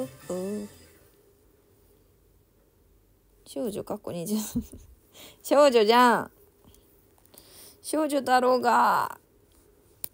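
A young woman speaks in a high, cute voice close to the microphone, in short bursts with pauses.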